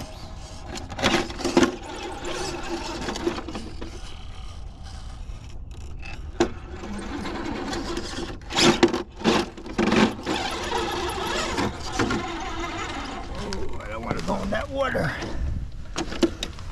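Rubber tyres scrape and knock against rock.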